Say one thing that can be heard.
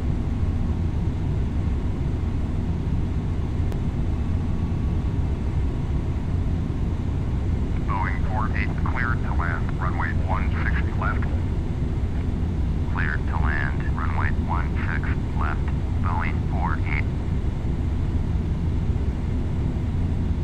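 Jet engines roar steadily with a deep rumble.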